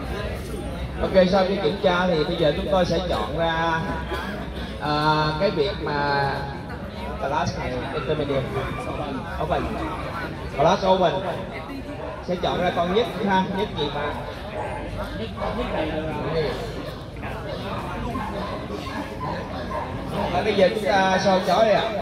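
A man talks loudly over a loudspeaker.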